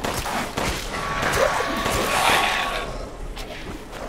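A monstrous creature growls and snarls close by.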